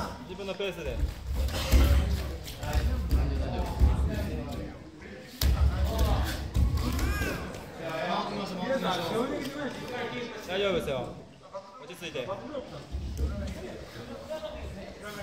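Two grapplers scuffle and thump on a padded mat.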